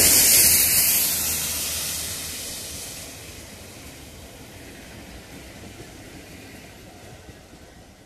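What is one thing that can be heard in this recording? Tank wagons rumble and clatter over rail joints.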